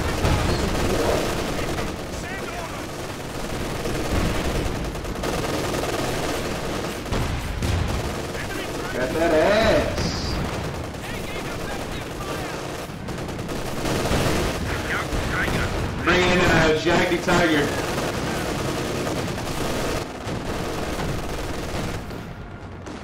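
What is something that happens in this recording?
Gunfire and explosions rumble in a battle.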